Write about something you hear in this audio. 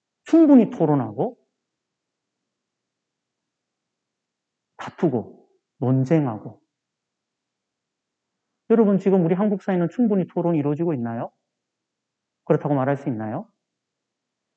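A middle-aged man lectures calmly into a microphone, with pauses between phrases.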